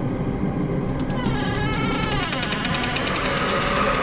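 A door creaks slowly open.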